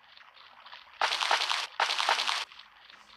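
Quick footsteps patter on stone.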